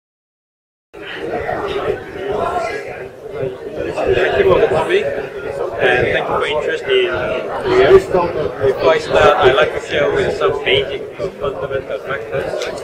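A middle-aged man speaks nearby with animation.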